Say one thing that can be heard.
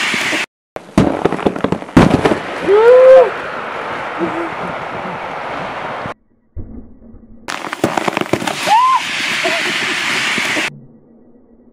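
An inflatable raft bursts open and fills with a loud rushing whoosh.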